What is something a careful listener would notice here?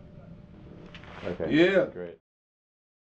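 A man speaks loudly and with animation close by.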